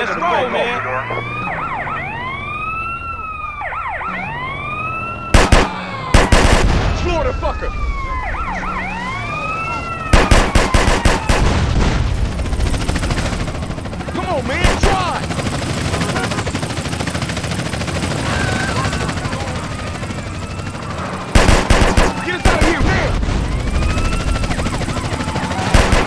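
Police sirens wail up and down.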